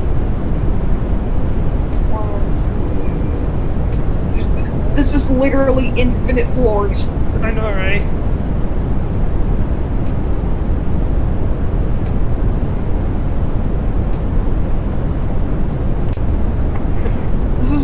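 An elevator hums steadily as it rises.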